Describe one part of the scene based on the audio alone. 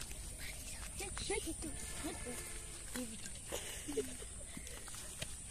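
A young boy speaks casually nearby.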